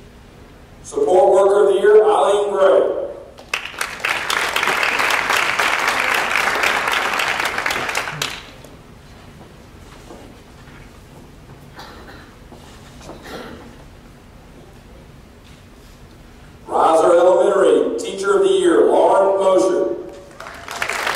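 A man announces names through a microphone in a large echoing hall.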